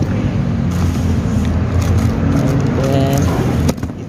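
Cardboard rustles as a hand reaches into a box.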